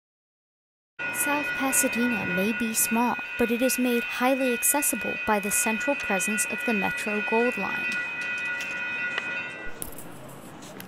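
A railway crossing bell rings steadily nearby.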